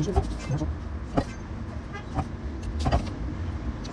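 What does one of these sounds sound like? A knife clicks against a metal pan.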